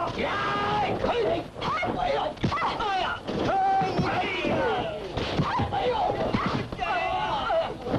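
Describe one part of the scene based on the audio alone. Punches and kicks thud against bodies.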